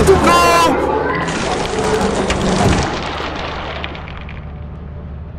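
A heavy metal door slides shut with a long hiss.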